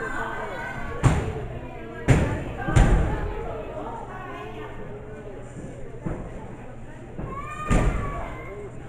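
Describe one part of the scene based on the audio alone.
Wrestlers slam heavily onto a ring mat with loud booming thuds.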